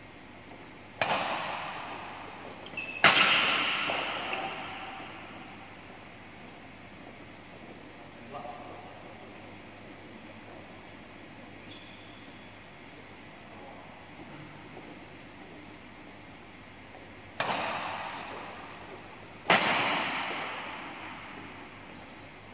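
Badminton rackets strike a shuttlecock with sharp smacks that echo through a large hall.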